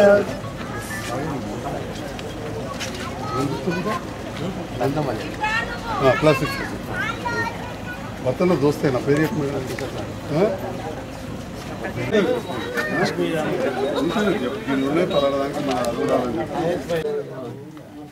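Several men talk at once nearby.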